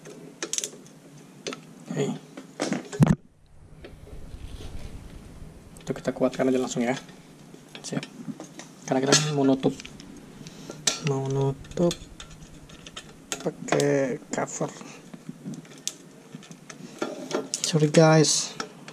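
Pliers snip and click against a stiff wire.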